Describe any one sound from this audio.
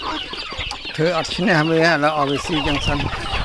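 A rooster crows.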